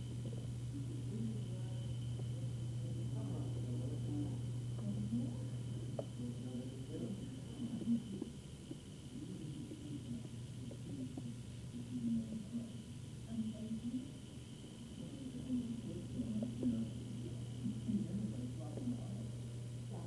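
A man talks quietly close by.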